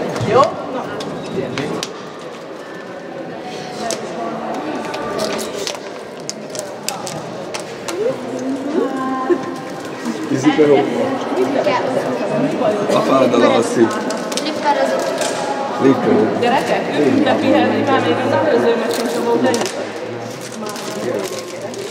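A woman talks with animation to a group in a large echoing hall.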